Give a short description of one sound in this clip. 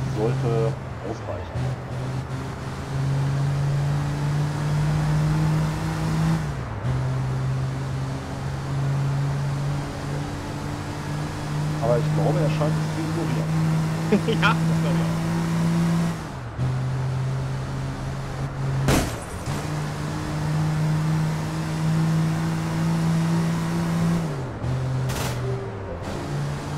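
A car engine hums and rises in pitch as it speeds up, then drops as the gears shift.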